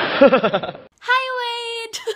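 A young woman speaks brightly and cheerfully, close to the microphone.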